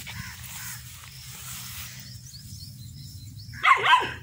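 A puppy runs rustling through long grass.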